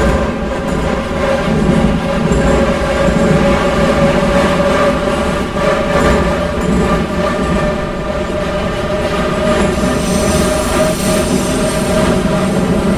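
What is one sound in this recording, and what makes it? A subway train rumbles and whines steadily as it speeds through a tunnel.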